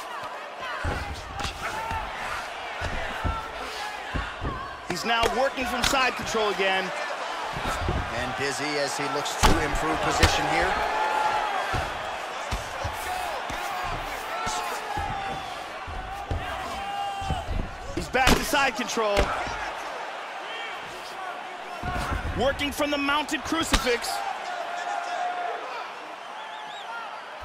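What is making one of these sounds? Punches thud against a body in quick bursts.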